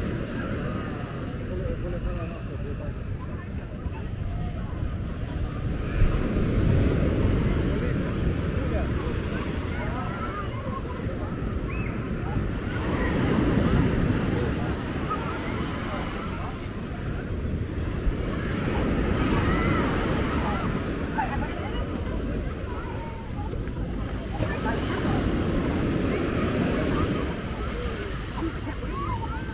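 Small waves wash onto the shore in surges.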